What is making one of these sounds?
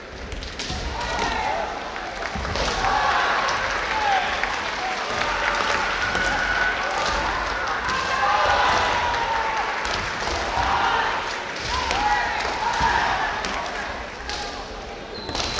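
Fighters shout loudly in an echoing hall.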